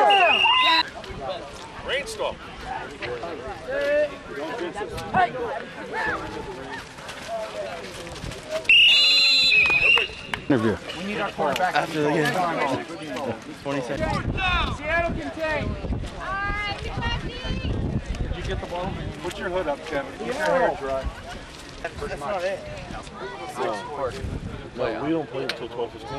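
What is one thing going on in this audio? Several young men talk and shout over one another outdoors.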